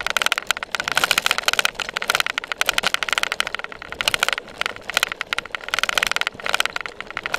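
A bicycle rattles and clatters over bumpy ground.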